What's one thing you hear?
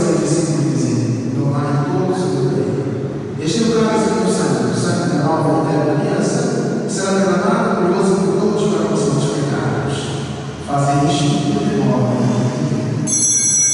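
A man speaks in a large echoing hall.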